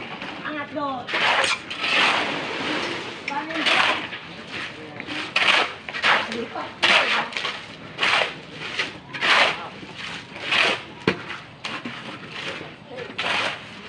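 A shovel scrapes wet concrete over and over.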